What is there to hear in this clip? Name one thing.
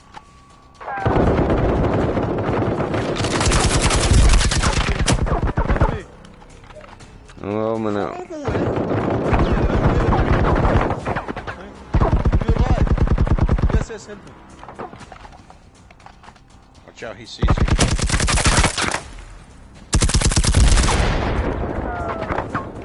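A rifle fires rapid bursts of gunshots close by.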